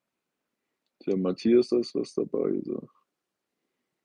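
An older man speaks calmly, close to the microphone.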